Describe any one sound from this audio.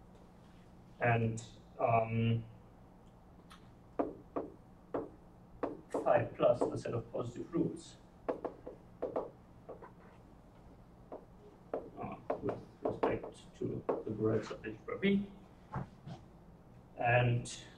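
A young man lectures calmly.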